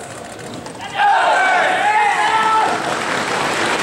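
Two teams of young men shout a greeting in unison.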